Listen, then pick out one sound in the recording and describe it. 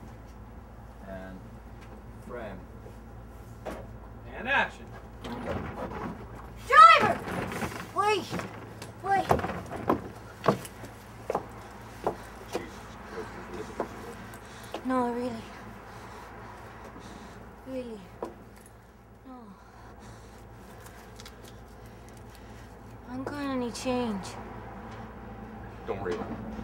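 A middle-aged man talks casually nearby.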